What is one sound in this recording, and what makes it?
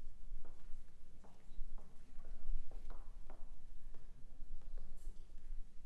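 Footsteps tap softly on a wooden stage floor.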